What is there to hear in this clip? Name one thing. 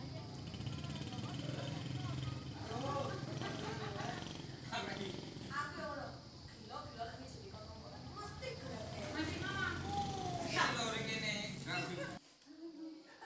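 Motorbike engines idle and rumble nearby.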